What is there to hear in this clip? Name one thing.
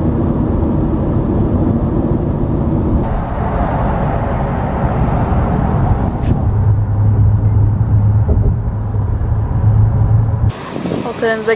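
A car drives along a highway, its road noise rumbling from inside the car.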